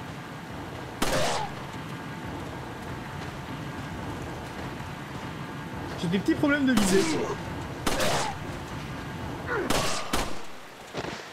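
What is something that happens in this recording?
Pistol shots ring out sharply.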